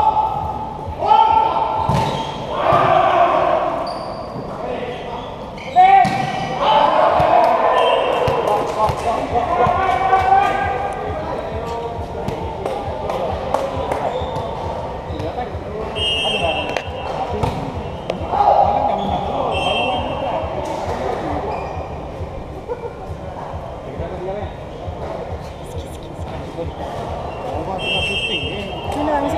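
Sneakers squeak on the court floor.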